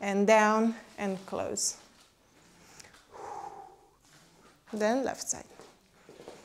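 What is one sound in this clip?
A woman calls out counts in a melodic voice in an echoing room.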